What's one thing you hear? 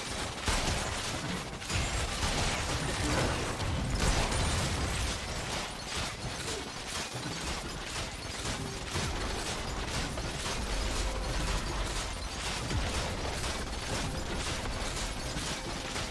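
Spell blasts and weapon hits crackle and thud in a busy game battle.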